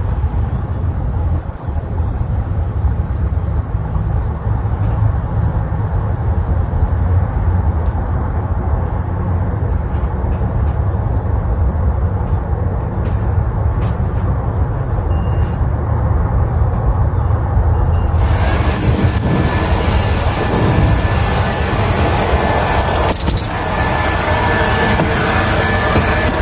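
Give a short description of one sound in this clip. Wind blows steadily outdoors, rumbling low.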